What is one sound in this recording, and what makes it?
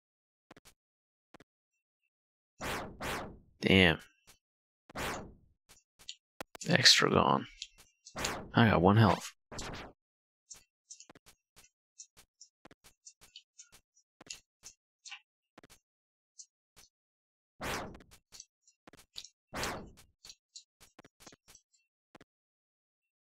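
Quick electronic slashing and blipping game sounds play.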